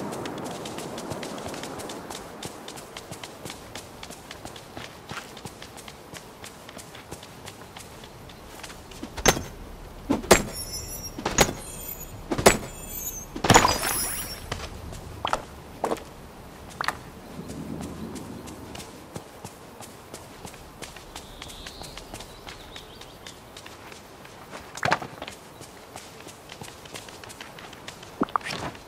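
Quick footsteps patter over grass.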